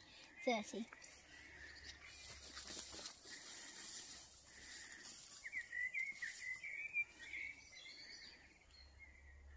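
Tall grass rustles and swishes as a child pushes through it.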